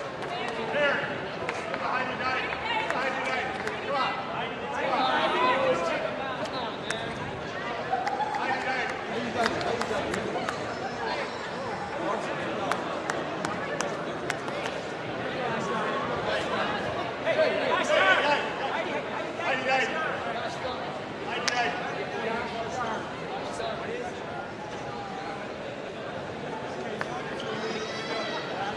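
Elderly men chat casually with each other close by.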